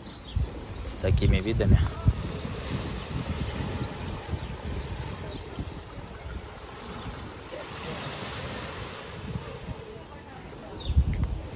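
Small waves wash gently against a rocky shore.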